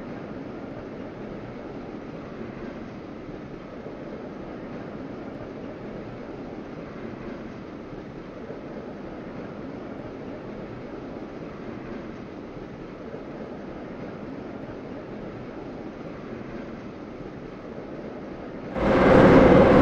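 A metro train rumbles on rails through a tunnel.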